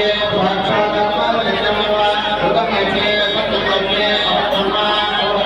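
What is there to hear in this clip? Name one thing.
Several men chant together in unison.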